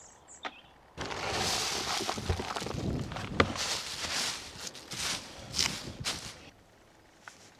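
Wood shavings rustle and crunch as they are poured and stirred by hand.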